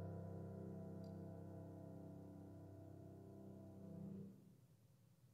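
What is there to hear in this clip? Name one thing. A piano plays softly and its notes fade away.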